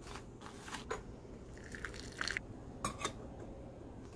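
A glass lid clinks onto a glass teapot.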